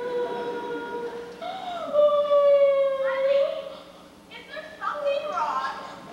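A woman sings with long held notes in a large hall.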